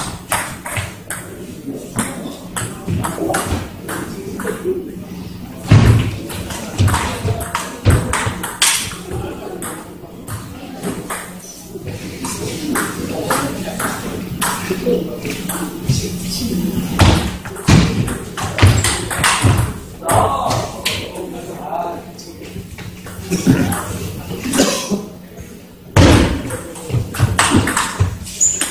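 A ball clicks sharply back and forth off paddles.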